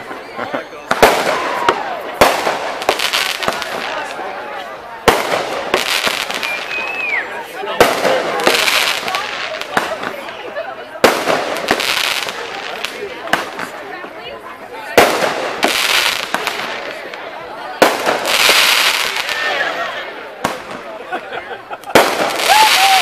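Fireworks burst with loud, sharp bangs outdoors.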